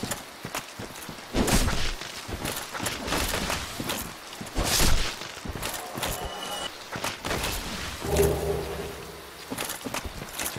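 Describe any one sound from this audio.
A sword swings and strikes with sharp slashing hits.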